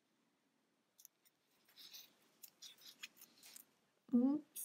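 A crochet hook softly scrapes and clicks through yarn.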